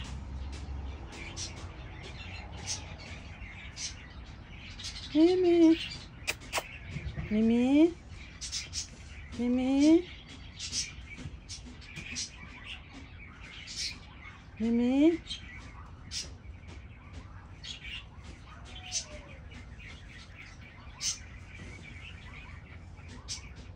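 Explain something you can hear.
A cat crunches and chews food.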